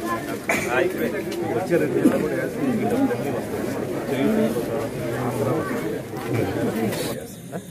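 Several men talk over one another close by.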